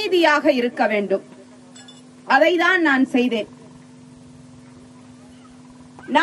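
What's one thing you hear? A woman speaks steadily and clearly into a microphone, with short pauses.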